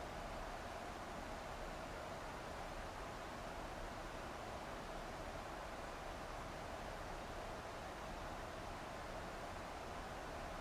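A jet engine drones steadily with a rushing roar.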